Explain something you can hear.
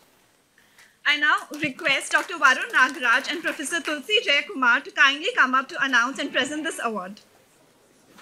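A young woman announces through a microphone.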